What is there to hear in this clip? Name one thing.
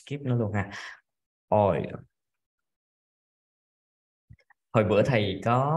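A young man speaks slowly and clearly through a microphone, as if teaching pronunciation.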